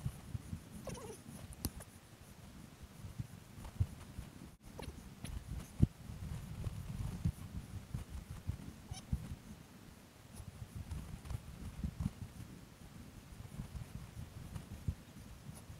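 Hiking boots scuff and step on bare granite.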